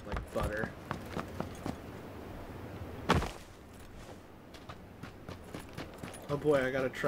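Quick footsteps thud on hard ground and grass.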